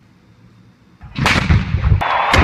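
A cannon fires with a loud boom outdoors.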